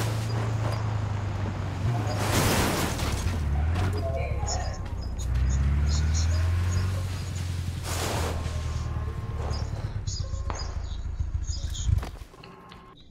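A small off-road car engine drives and revs.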